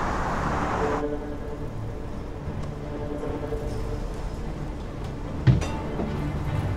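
A bus engine hums from inside the bus.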